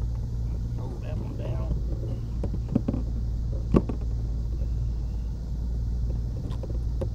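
A boat engine idles with a low, steady rumble.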